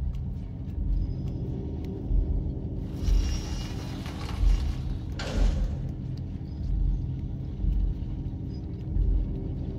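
Small footsteps patter softly across a hard floor.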